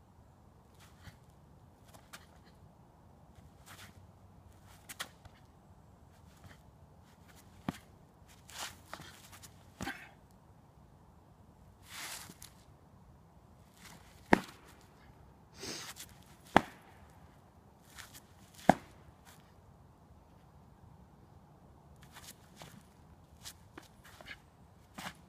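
Sneakers scuff and tap on asphalt.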